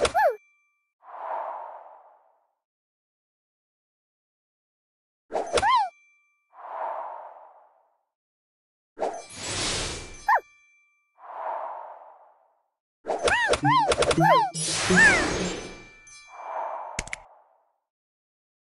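A soft whooshing sound plays as pieces slide in.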